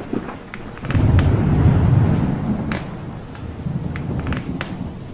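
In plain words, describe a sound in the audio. Sneakers tap and scuff on a hard floor.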